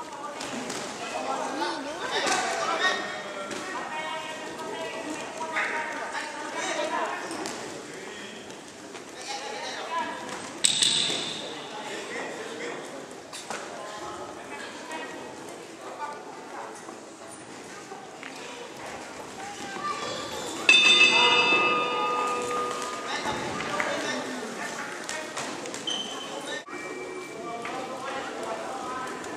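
A crowd shouts and cheers in a large echoing hall.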